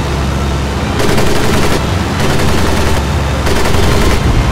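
Machine guns fire in rapid bursts.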